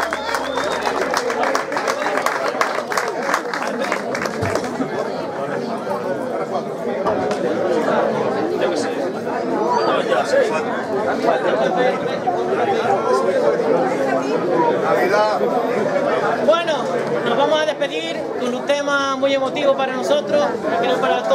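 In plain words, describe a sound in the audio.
An accordion plays a melody.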